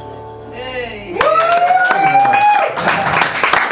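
A young man sings into a microphone, holding a long note.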